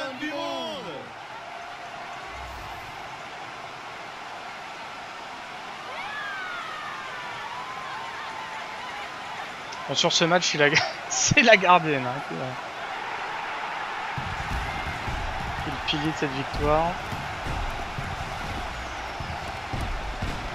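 A large crowd cheers steadily in a stadium.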